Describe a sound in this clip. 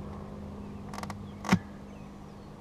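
A metal tool clicks and scrapes against wood.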